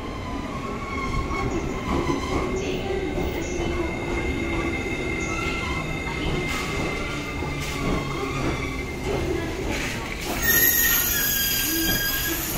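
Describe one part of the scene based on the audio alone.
Train brakes squeal as the train slows down.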